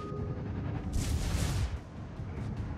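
Shells splash into the water with a rushing burst.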